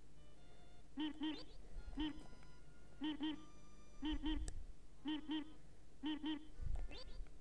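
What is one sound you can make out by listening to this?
A cartoon bird beeps in quick high pairs.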